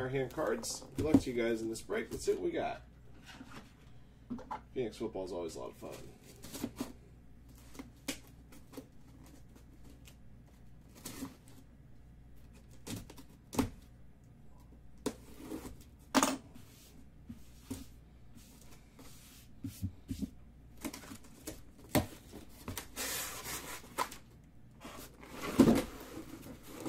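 A cardboard box bumps and scrapes on a table.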